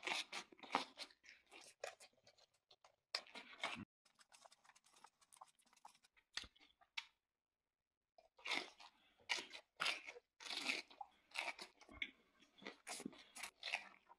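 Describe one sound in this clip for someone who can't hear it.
A young man chews and crunches food close to a microphone.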